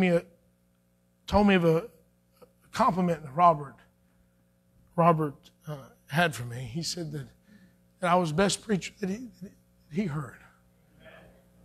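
A man speaks calmly into a microphone in a large echoing room, pausing between phrases.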